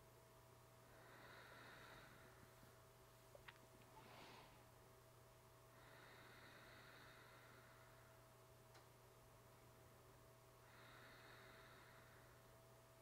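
A woman breathes slowly and deeply.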